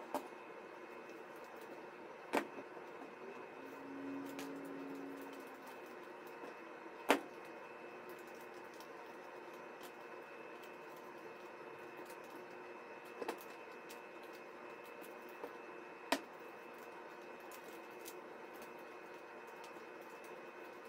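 Rolled magazine paper crinkles as hands weave it.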